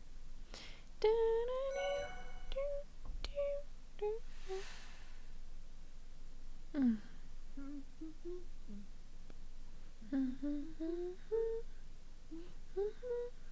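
A music box plays a slow, tinkling tune.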